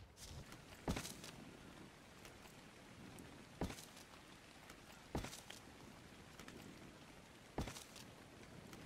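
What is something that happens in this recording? Stone walls break apart with sharp knocks.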